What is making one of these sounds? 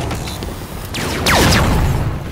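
A laser weapon fires with a loud, falling whine.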